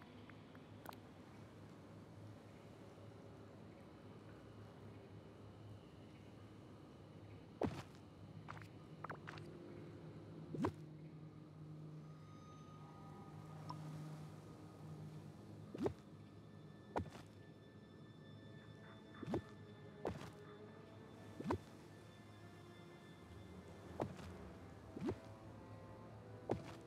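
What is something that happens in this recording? Short game interface clicks and pops sound now and then as items are placed.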